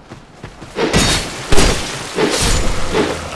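Swords swing and strike with sharp clangs.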